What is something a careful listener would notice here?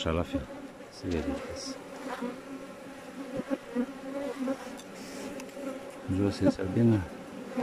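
Many bees buzz steadily close by.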